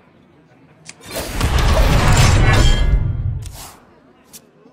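A loud magical burst booms and whooshes in a game.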